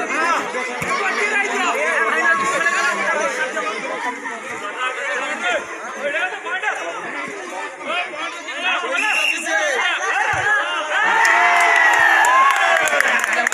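A crowd of young men and boys talks and shouts outdoors.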